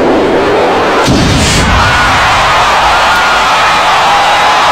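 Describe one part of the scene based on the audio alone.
Stage pyrotechnics burst with a hiss.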